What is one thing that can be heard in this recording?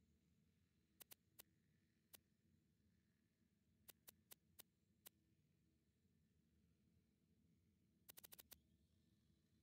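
Soft electronic clicks sound now and then as menu items are selected.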